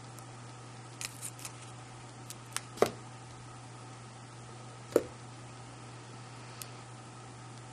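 Small objects knock lightly on a table.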